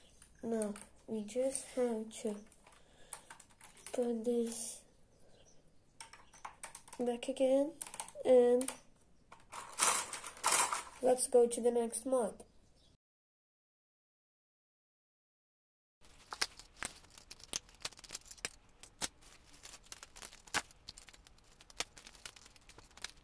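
Plastic parts of a toy mechanism click and rattle as it is wound and turned.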